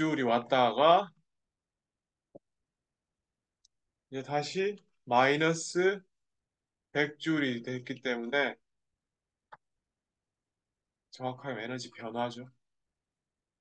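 A young man speaks calmly into a close microphone, in short phrases with pauses.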